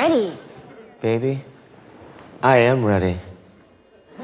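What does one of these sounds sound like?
A man speaks with exaggerated expression close by.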